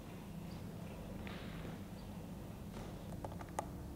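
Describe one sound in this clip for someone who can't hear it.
A man's footsteps tap across a hard floor in a large, echoing hall.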